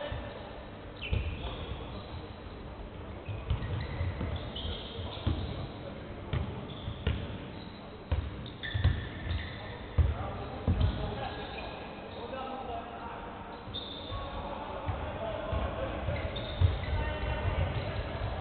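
A basketball bounces on a wooden floor in a large echoing hall.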